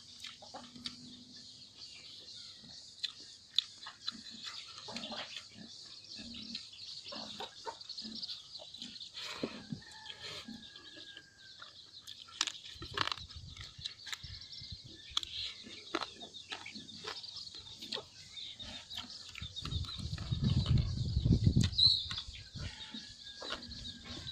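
A man chews food noisily, close by.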